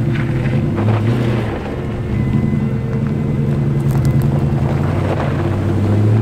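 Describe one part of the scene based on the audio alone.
Tyres crunch over a dirt track.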